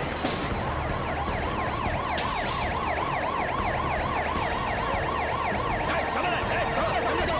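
A police siren wails steadily.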